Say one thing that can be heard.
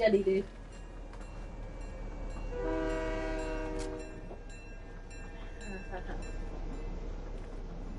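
A train rumbles along the tracks.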